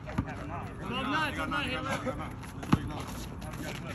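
Men call out to each other during a game.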